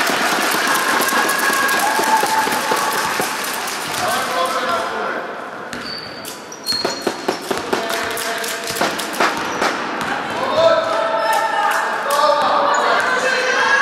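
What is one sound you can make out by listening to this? Girls shout and call out across an echoing hall.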